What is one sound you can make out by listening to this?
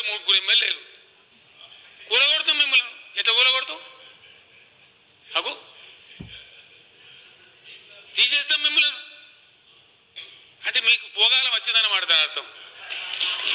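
An elderly man speaks forcefully into a microphone in bursts, with pauses, in a large echoing hall.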